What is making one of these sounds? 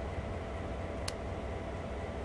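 A switch clicks as it is turned.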